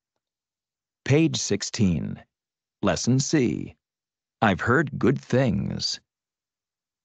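A man talks calmly, heard through a microphone.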